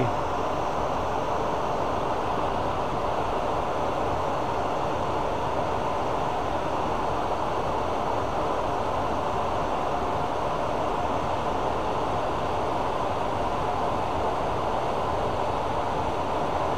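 A lathe motor hums steadily.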